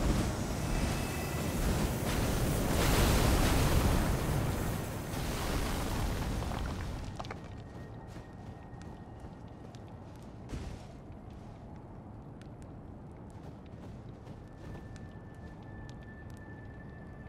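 Wind howls loudly in a snowstorm, then dies down.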